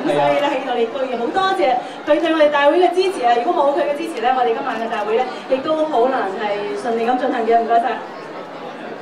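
A young woman speaks clearly through a microphone.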